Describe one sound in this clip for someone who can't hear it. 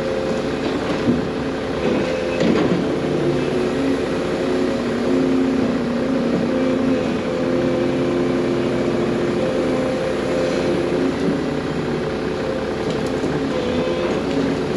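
Logs and debris clatter and thump into a metal dump bed.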